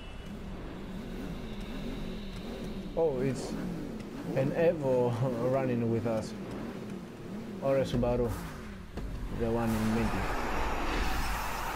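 Race car engines idle and rev loudly.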